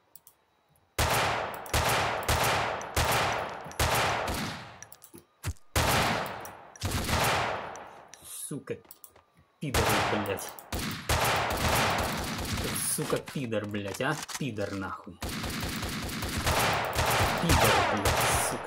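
Sniper rifle shots crack loudly, one after another, each ringing out.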